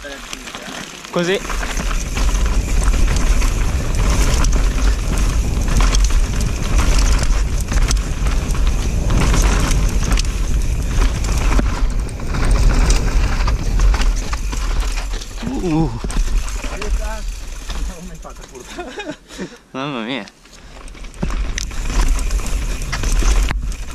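Bike tyres crunch and skid over loose gravel and rock.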